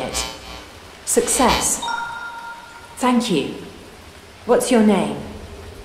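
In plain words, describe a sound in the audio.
A small robot chirps with quick, sliding electronic beeps.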